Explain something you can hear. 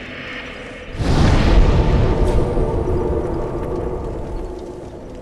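A deep rushing roar swells up.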